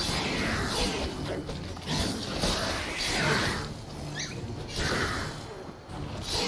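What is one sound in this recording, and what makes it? Swords clash in a game fight.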